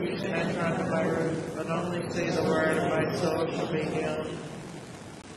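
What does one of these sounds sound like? An elderly man speaks slowly and solemnly into a microphone in a large echoing room.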